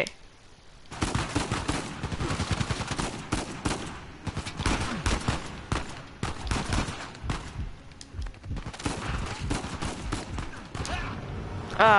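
Pistol shots ring out in rapid bursts.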